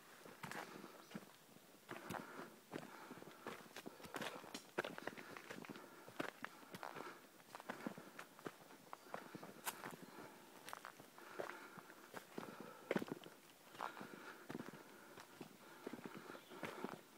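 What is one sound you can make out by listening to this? Footsteps crunch and rustle on dry leaves and dirt.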